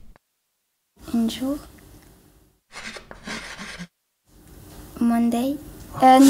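A young girl speaks close to the microphone.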